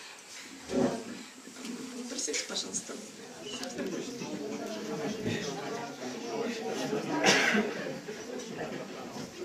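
A mixed crowd of adults and children chatter quietly nearby.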